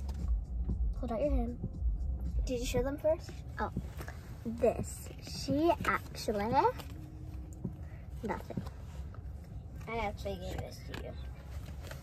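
A young girl talks playfully nearby.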